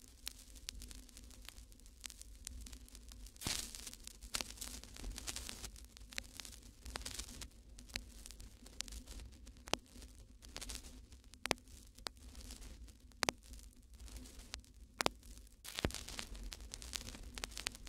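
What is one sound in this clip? Small objects click against a tabletop.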